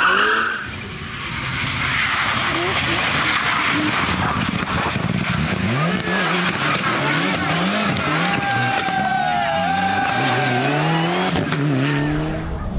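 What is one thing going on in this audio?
A rally car engine revs hard, rising and falling with gear changes, as the car approaches and passes close by.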